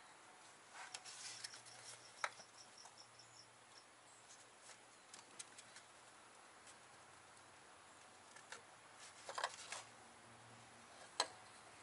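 Metal tools click and clink against engine parts.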